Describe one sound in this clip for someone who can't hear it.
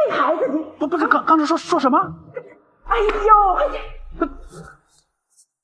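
A middle-aged woman speaks with animation close by.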